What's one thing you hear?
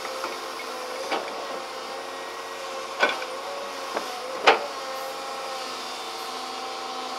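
An excavator engine rumbles and whines steadily.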